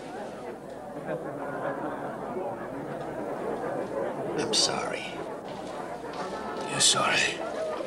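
An older man answers quietly, close by.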